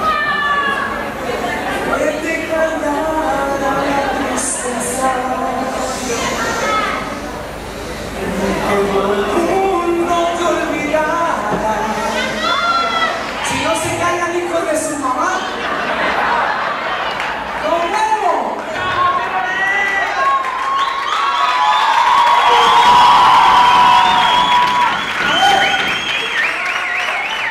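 A young man sings into a microphone through loudspeakers in an echoing hall.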